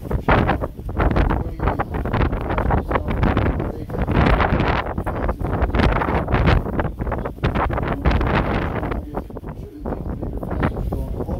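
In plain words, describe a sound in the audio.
A man speaks steadily into a close microphone.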